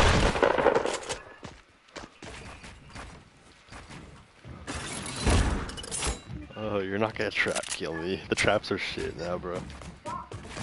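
Wooden walls and ramps are built with quick knocking clatters.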